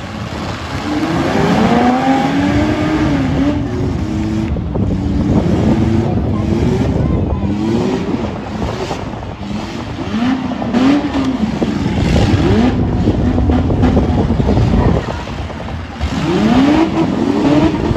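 A large crowd cheers outdoors.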